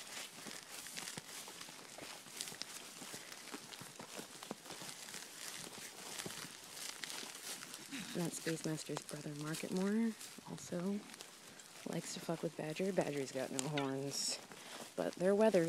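Hooves rustle through wet grass.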